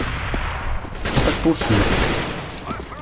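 A rifle fires a few quick shots close by.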